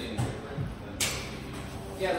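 A door thuds shut.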